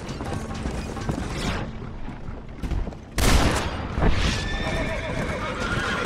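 Horse hooves clop steadily on dirt.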